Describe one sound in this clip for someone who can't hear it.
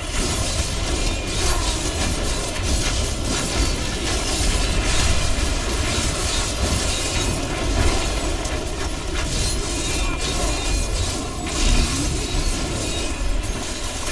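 Weapons clash and magic blasts crackle in a fast, busy fight.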